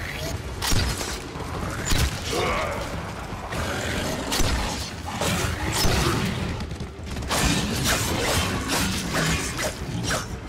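A blade whooshes through the air in quick swings.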